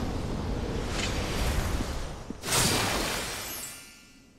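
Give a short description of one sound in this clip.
A blade swings through the air with a sharp whoosh.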